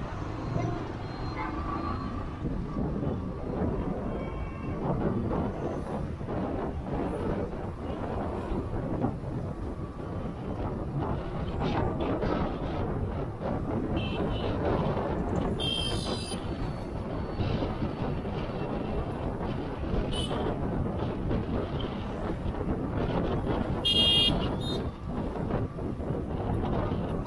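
Traffic engines hum and drone along a busy street.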